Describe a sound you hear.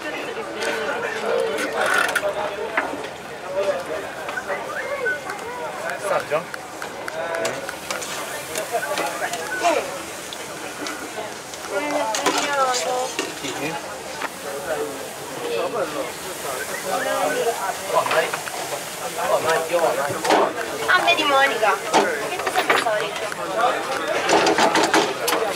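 Utensils clink against metal pots and pans.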